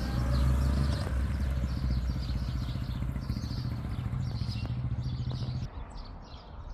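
A motorcycle engine idles steadily nearby, then cuts off.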